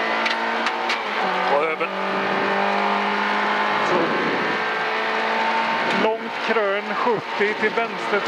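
Tyres rumble over a rough gravel track.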